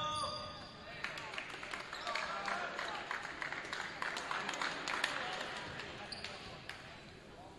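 A crowd of spectators cheers and applauds.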